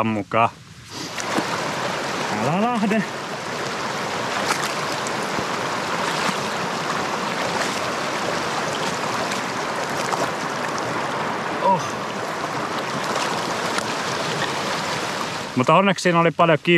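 A shallow stream rushes and gurgles over stones.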